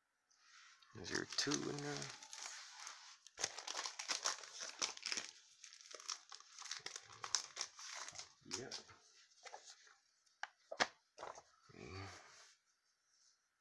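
A glossy paper comic rustles and slides.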